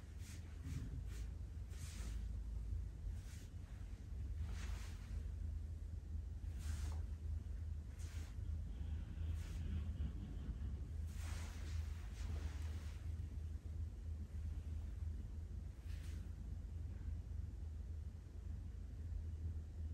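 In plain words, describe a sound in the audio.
Hands rub and press on cloth with soft rustling.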